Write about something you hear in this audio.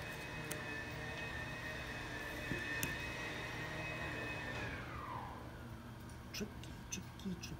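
Playing cards slap and click softly against a table.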